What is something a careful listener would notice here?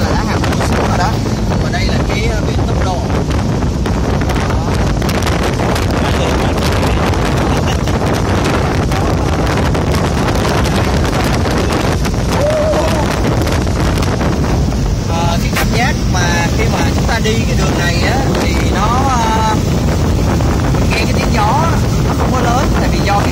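Strong wind roars past in an open car.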